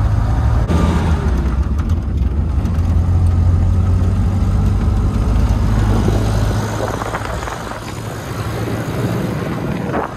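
Wind rushes past an open vehicle window.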